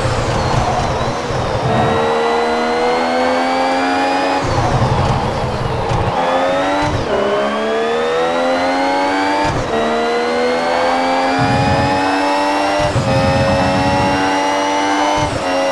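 A racing car engine whines loudly, rising in pitch as it speeds up and dropping at each gear change.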